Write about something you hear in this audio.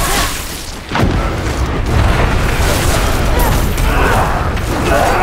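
A fiery blast roars and whooshes.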